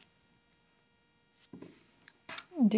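Scissors snip through yarn.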